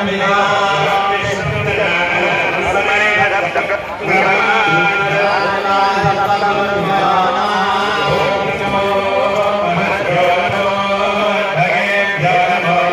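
Music with a singing voice plays loudly over outdoor loudspeakers.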